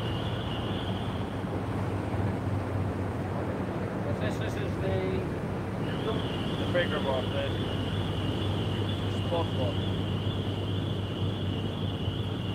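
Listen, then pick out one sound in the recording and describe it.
Wind blows steadily outdoors by open water.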